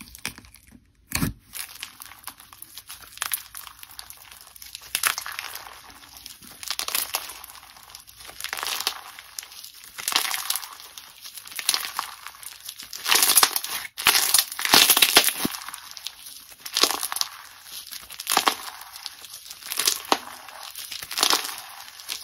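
Crunchy slime crackles and pops as hands squeeze and stretch it, close up.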